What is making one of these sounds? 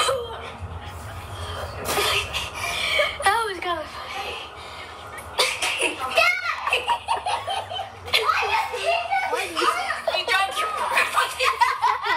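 A young boy laughs over an online call.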